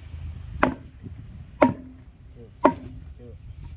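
Sharp knocks sound as a plastic pipe is worked into a hose.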